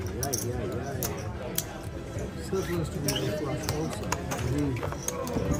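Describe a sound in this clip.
Casino chips click together.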